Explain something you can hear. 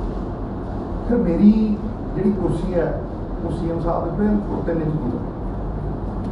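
A man speaks calmly into nearby microphones.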